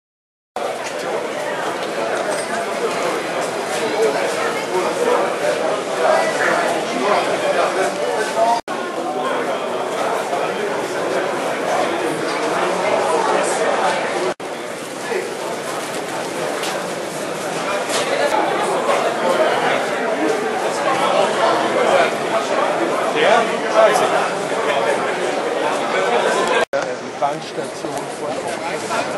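A crowd of adults chatters indoors.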